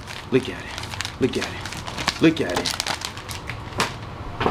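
Plastic and cardboard packages rustle and crinkle close by.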